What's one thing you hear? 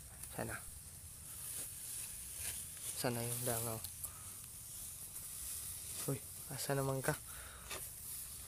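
Dry rice stalks rustle as they brush together.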